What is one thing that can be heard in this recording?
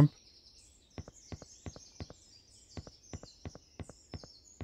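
Quick light footsteps tap.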